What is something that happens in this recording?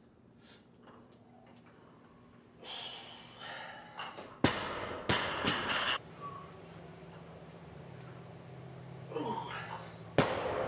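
A young man grunts loudly with effort.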